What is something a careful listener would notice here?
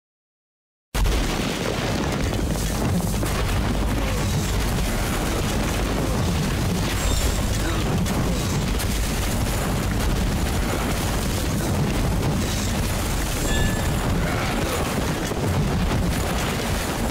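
Weapons clash and magic blasts boom in a noisy battle.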